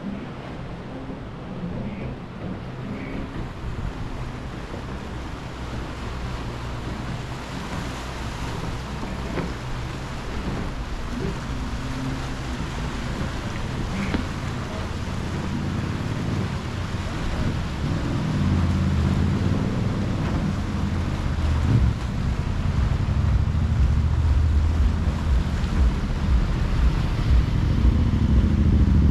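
Wind blows outdoors, gusting louder over time.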